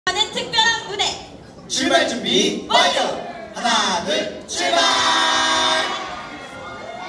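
Young men sing loudly through loudspeakers in a large hall.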